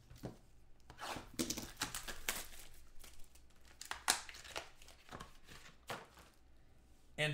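Plastic wrapping crinkles and rustles as hands handle it.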